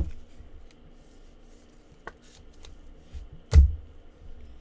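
A plastic card sleeve crinkles and rustles in handling.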